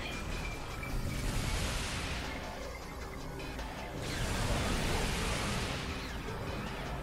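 A beam weapon fires with a loud rushing blast.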